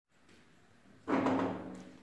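A plastic part is set down with a knock on a hard floor.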